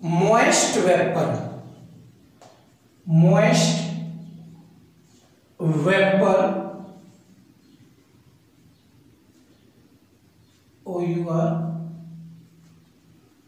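A man speaks slowly and clearly in short phrases, close by.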